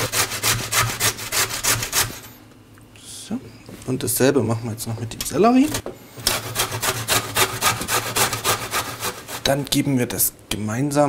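Carrots scrape rapidly against a metal grater.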